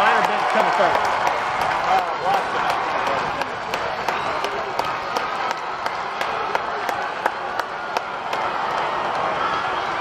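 People in the crowd clap their hands.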